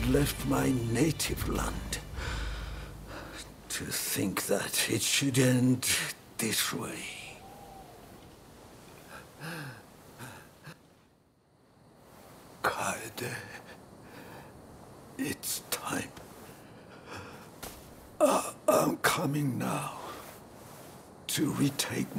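A man speaks in a weak, strained voice, close by.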